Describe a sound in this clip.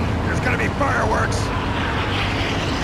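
A man speaks urgently.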